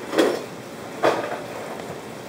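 A hand knocks against a plastic bowl.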